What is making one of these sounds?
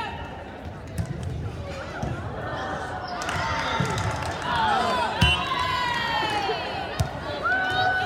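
A volleyball is hit with a loud slap.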